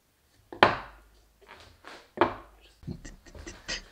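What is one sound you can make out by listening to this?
Wooden and metal pieces knock and clatter on a workbench.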